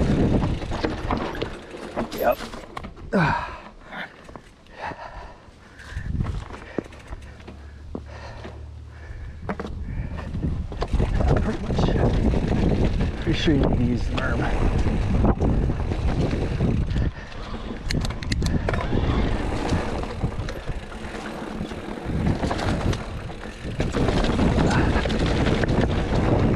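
Mountain bike tyres rumble and clatter over rocks and dirt.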